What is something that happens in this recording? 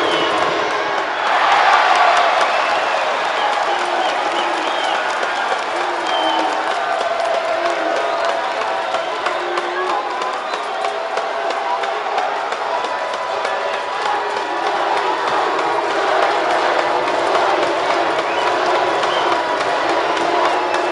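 A large crowd cheers and chants throughout, echoing in a big indoor hall.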